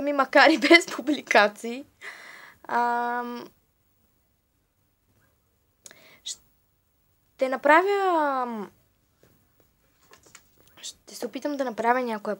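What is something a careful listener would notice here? A young woman speaks and sings playfully, very close to the microphone, with pauses in between.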